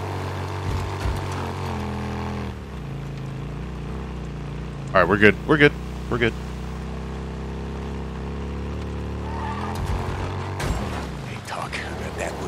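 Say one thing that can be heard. A motorcycle engine hums steadily and changes pitch as the bike rides.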